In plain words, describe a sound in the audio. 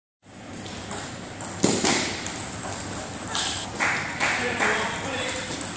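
Table tennis balls click sharply against paddles and a table in a large echoing hall.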